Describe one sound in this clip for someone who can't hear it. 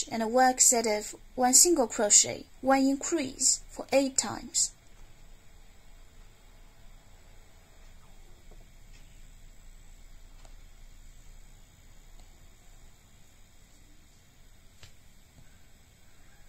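A crochet hook clicks and scrapes softly through yarn.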